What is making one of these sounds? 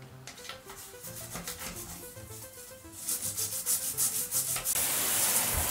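A toothbrush scrubs briskly against hard plastic.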